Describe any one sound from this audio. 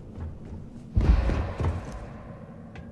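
A heavy metal door swings open with a loud thud.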